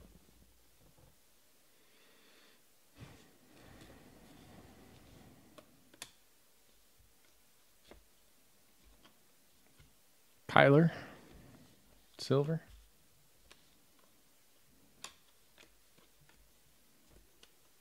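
Stiff trading cards slide and click against each other as they are shuffled by hand.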